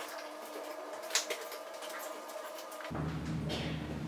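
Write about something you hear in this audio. A dryer door opens and shuts with a thud.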